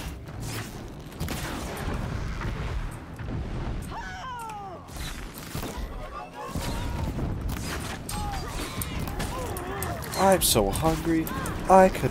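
A bowstring twangs as arrows fly.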